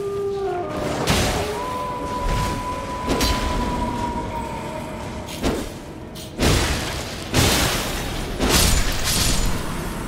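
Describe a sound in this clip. Heavy blows strike with sharp crashes and ringing bursts.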